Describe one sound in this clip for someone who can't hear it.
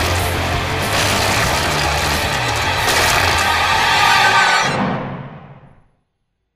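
A chainsaw roars loudly and cuts.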